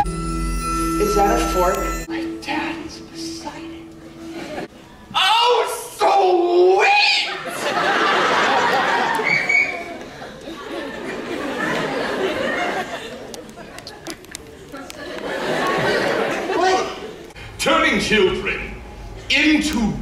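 A young woman speaks on a stage.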